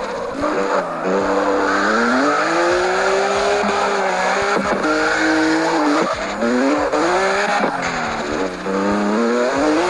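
A car engine revs and whines, rising and falling as the gears shift.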